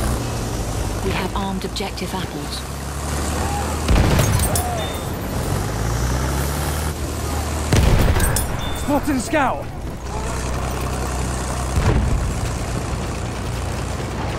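A heavy tank engine rumbles and clanks steadily.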